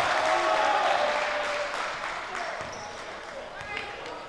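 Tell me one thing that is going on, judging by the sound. A crowd cheers loudly in a large echoing gym and then dies down.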